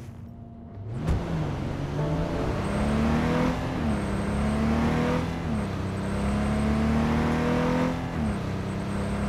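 A car engine revs hard and climbs in pitch through several gear changes.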